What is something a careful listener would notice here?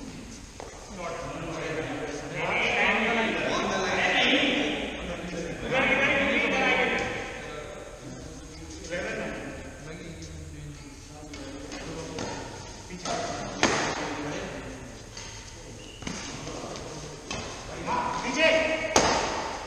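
Men talk and call out across an echoing hall.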